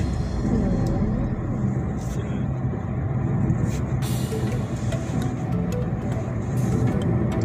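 A car engine hums steadily from inside the moving car.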